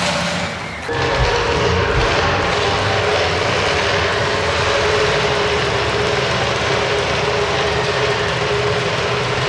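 A rally car engine rumbles and revs loudly.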